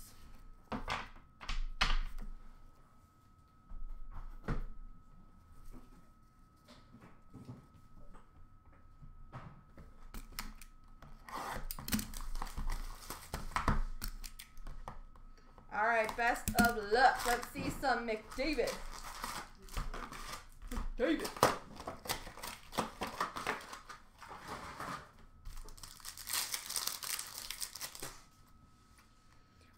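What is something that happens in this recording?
Card packs tap and knock against each other.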